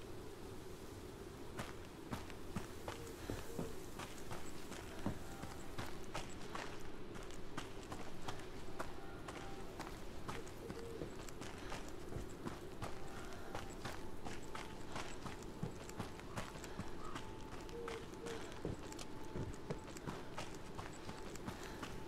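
Footsteps crunch on a forest path.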